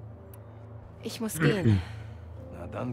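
A woman speaks calmly.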